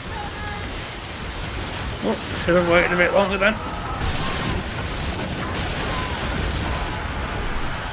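Heavy rain hisses down.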